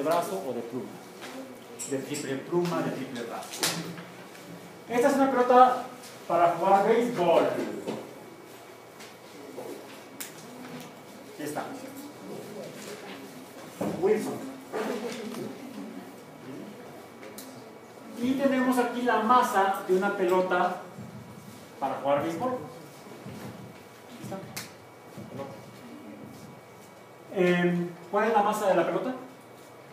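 A man lectures with animation in an echoing room.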